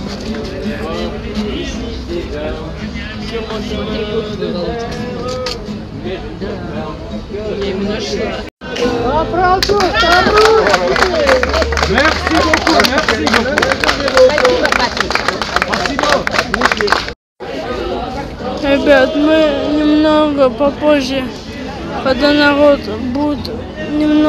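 A crowd of adults murmurs and talks outdoors.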